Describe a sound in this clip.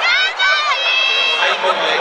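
A crowd chatters and cheers in a large echoing stadium.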